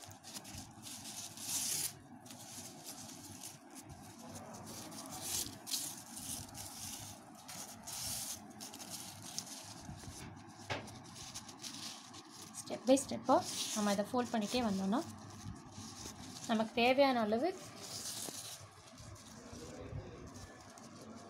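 Hands rustle a thin material while folding it.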